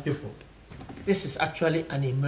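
An elderly man speaks gravely.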